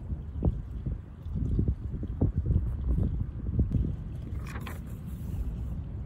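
Paper pages of a book rustle as a hand turns them.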